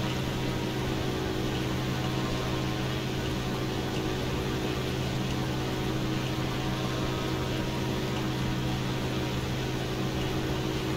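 A propeller aircraft engine drones steadily with a low hum.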